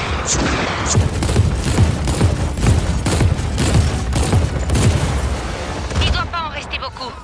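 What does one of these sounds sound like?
A tank cannon fires with heavy booms.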